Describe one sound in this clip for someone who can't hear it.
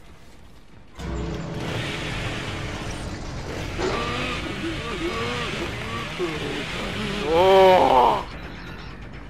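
A chainsaw engine roars and revs.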